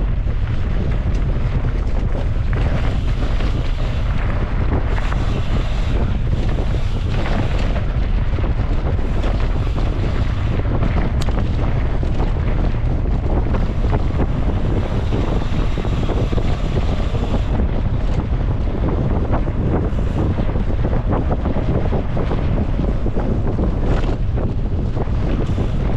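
Bicycle tyres crunch and rattle over a rough gravel trail.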